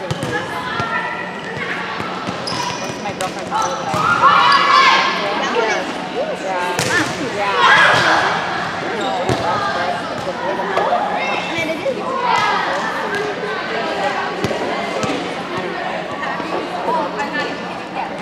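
Sneakers squeak on the hard court floor.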